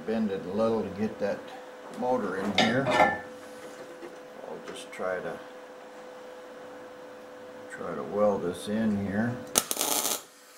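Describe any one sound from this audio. An elderly man talks calmly close by.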